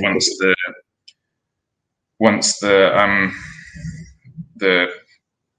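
A man speaks casually through a headset microphone, heard as on an online call.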